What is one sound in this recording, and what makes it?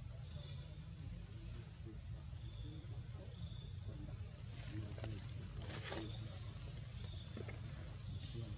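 A monkey chews and nibbles food close by.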